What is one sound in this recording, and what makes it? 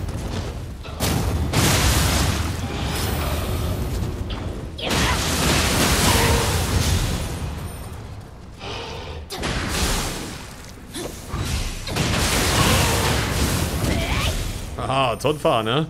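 Swords clash, metal on metal, in a fight.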